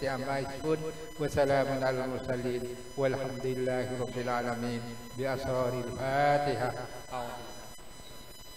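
An elderly man speaks slowly into a microphone, heard through a loudspeaker.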